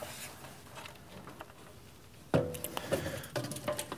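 A metal panel knocks against a metal box as it is set inside.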